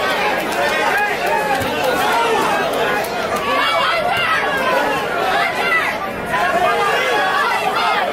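Boxing gloves thud against a boxer's body.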